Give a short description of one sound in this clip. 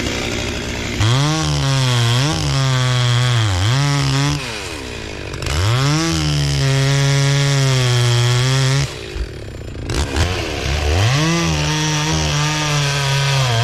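A chainsaw cuts through wood.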